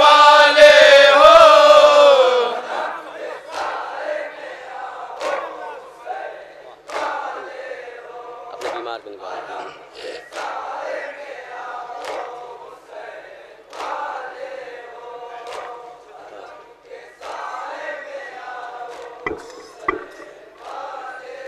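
A young man chants loudly through a microphone.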